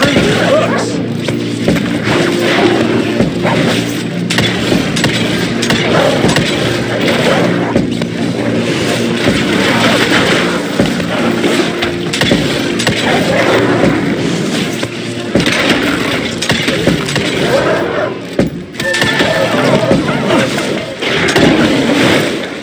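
Electric bolts crackle and zap in bursts.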